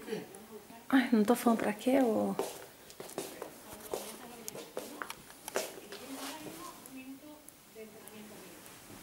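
A young woman speaks loudly and animatedly close by.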